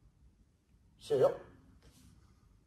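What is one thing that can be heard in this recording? A man gives a short, sharp shout in an echoing room.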